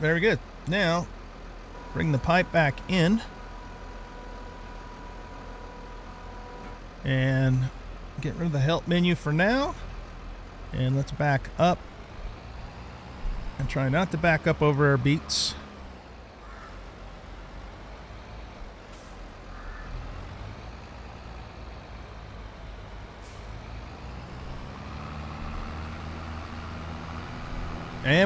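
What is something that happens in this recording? A tractor engine hums steadily and grows louder toward the end.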